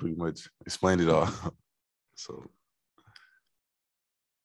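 Two young men laugh into microphones.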